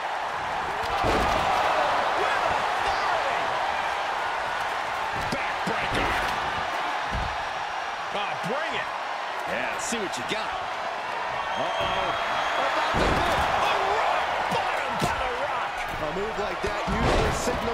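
Heavy bodies slam onto a wrestling ring with loud thuds.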